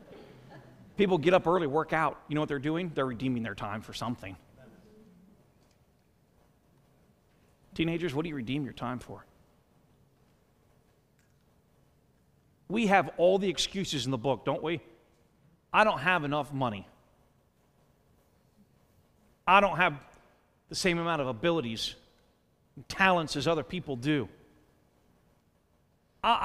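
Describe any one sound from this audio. A man preaches with animation through a microphone in a large echoing hall, in bursts with pauses.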